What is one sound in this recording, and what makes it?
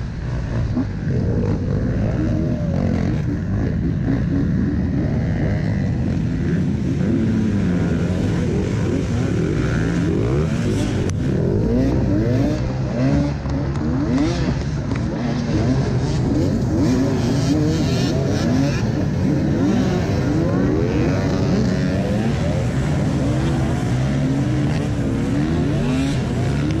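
Several dirt bike engines rev and roar loudly outdoors.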